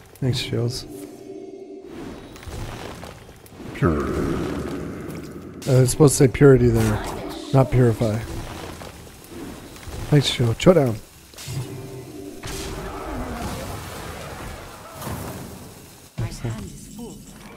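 Magical chimes and whooshes play as cards are played.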